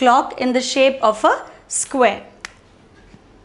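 A young woman speaks clearly and calmly into a nearby microphone.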